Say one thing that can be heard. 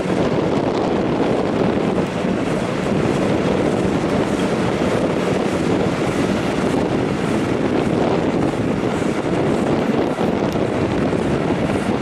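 Train wheels rumble and clatter steadily on the rails.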